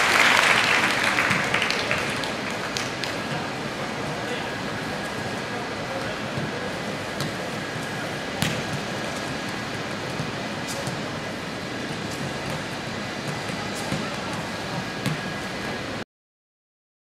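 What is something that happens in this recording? A large crowd cheers loudly in a big open stadium, then settles into a steady murmur.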